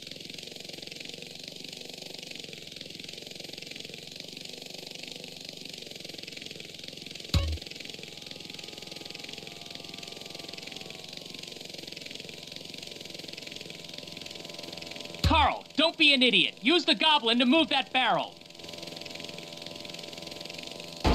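A helicopter rotor whirs steadily.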